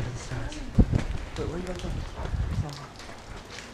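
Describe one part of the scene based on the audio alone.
Wind buffets loudly against a microphone.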